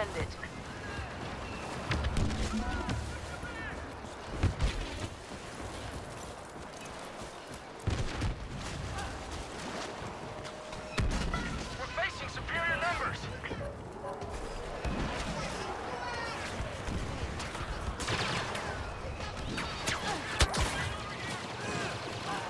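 Blaster shots fire in short, sharp bursts.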